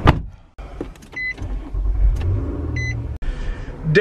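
A car's start button clicks as it is pressed.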